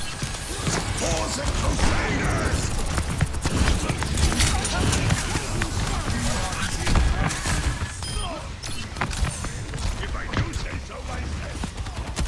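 Magical impacts crackle and boom.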